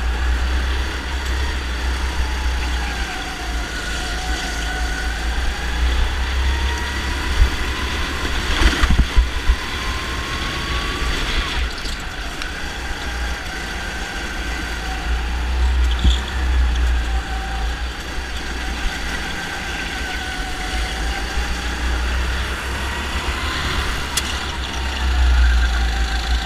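A kart engine buzzes close by, its pitch rising and falling with speed.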